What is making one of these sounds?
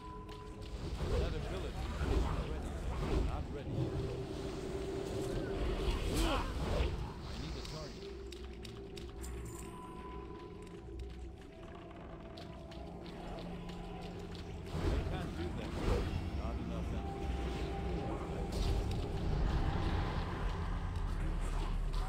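Magic spells burst and crackle in a fight.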